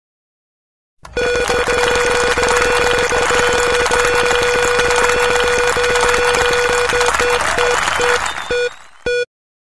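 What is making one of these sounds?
A prize wheel clicks rapidly as it spins, with a steady ringing tone.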